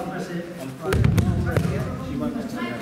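A body thuds onto a mat.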